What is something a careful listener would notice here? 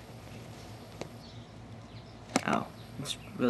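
A small metal engine part clicks as it is fitted by hand.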